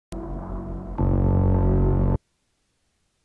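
Dramatic game music plays briefly and cuts off abruptly.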